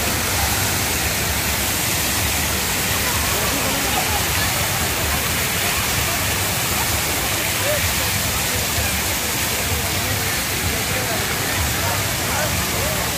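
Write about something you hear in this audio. Fountain jets spray and splash water steadily, outdoors.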